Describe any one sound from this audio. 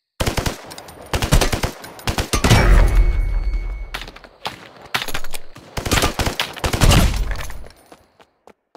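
Rapid bursts of rifle gunfire crack loudly.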